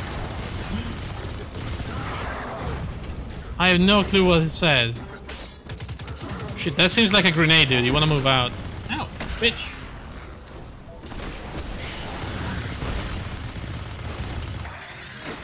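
An energy rifle fires rapid bursts.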